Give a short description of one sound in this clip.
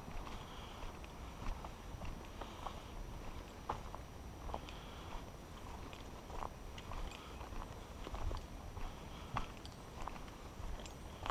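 Footsteps crunch steadily on a dirt trail through dry leaves.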